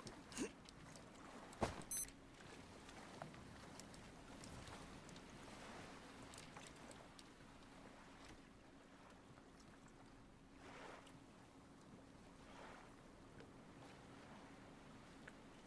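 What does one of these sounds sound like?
Water splashes and swirls softly around a swimmer.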